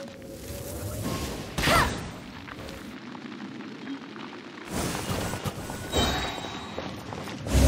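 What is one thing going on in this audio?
Fire bursts and crackles with loud whooshing blasts.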